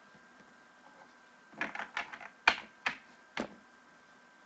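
Trading cards rustle and tap as a hand gathers them.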